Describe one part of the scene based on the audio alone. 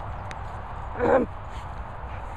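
A dog barks once nearby.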